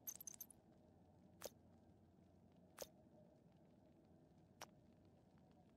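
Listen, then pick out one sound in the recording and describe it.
Short electronic menu clicks sound a few times.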